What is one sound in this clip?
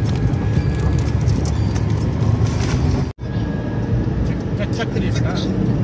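A car engine hums steadily from inside while driving.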